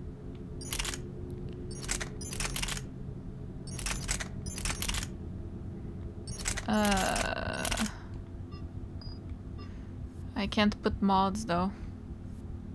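A young woman talks into a microphone close by, in a lively way.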